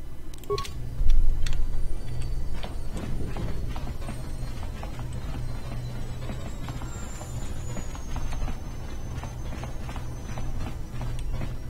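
Footsteps patter quickly on a hard metal floor.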